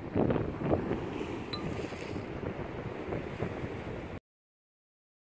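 Gentle sea waves wash against rocks outdoors.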